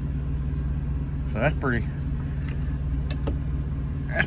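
A metal mounting arm clicks as it is folded.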